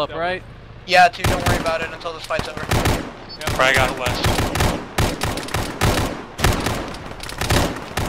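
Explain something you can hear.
A rifle fires sharp shots close by.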